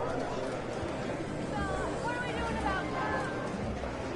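Slot machines chime and jingle.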